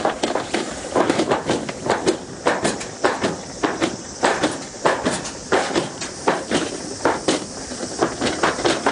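A sled rattles and rumbles along a metal track at speed.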